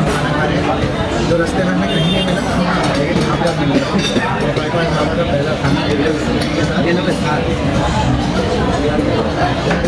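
A crowd of people chatters all around in a busy, echoing room.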